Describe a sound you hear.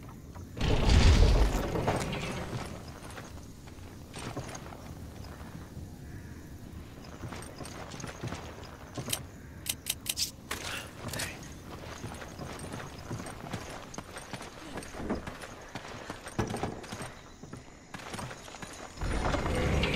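Heavy footsteps thud across wooden planks.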